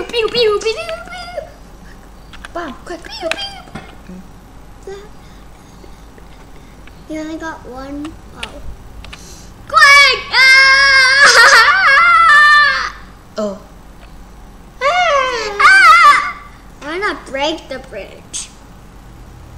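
A young boy talks excitedly close to a microphone.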